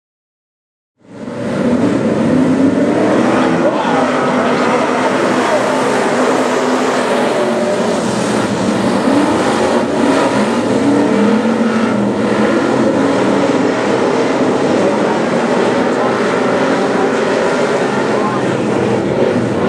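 A pack of V8 stock cars races at full throttle around a dirt oval.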